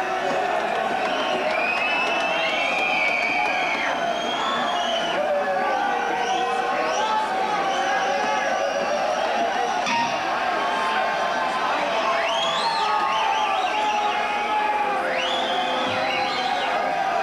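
An electric guitar plays a wailing lead with bending, sliding notes, heard live in a large hall.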